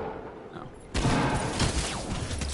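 A gun fires a sharp shot.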